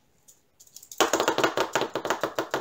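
Tiny beads rattle and pour into a plastic container.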